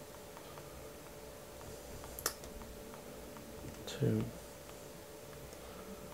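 Buttons on a handheld radio click as they are pressed.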